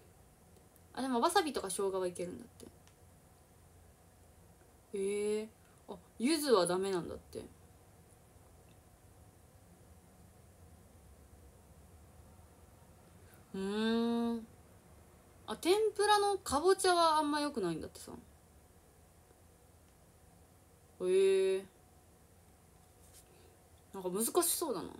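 A young woman speaks softly and casually in short bursts, close by.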